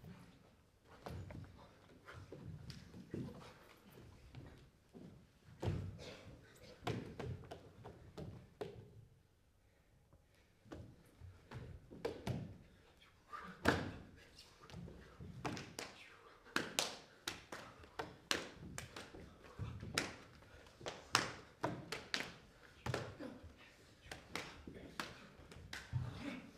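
Bare feet thump and slap on a wooden stage floor.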